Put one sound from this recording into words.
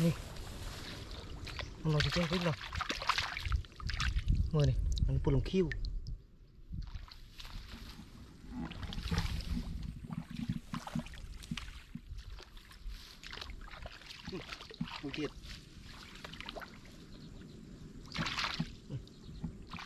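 Hands splash and scoop in muddy water.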